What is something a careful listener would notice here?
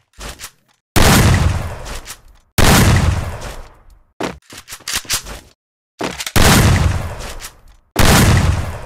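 A shotgun fires loud booming blasts, one after another.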